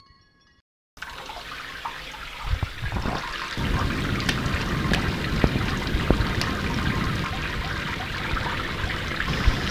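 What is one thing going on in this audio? Water sprinkles steadily from a shower onto a tiled floor.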